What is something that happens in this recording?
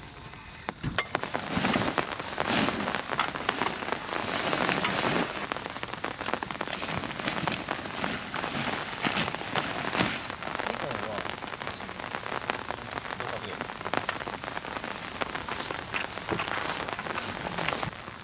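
A canvas tent rustles and flaps as it is spread out on grass.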